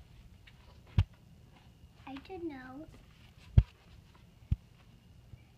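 A stiff book knocks and thumps as it is handled.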